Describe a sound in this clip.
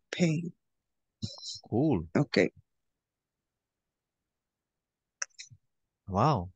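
A man speaks with animation over an online call, in short bursts.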